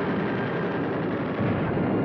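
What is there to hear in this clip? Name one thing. A propeller engine roars as a plane passes close by.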